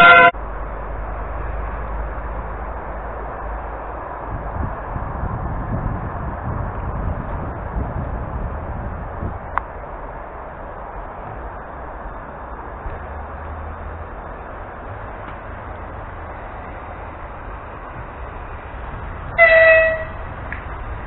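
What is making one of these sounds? A train horn gives short, loud blasts.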